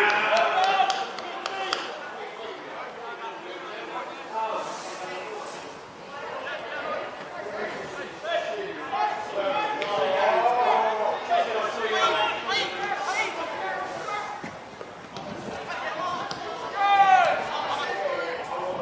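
Spectators on the sideline talk and call out.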